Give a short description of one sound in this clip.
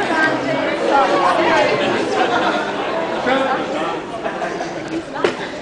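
A young man speaks into a microphone through loudspeakers in a large echoing room.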